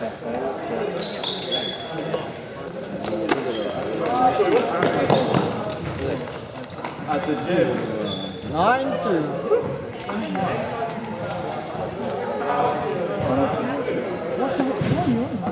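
Sports shoes squeak sharply on a hard floor.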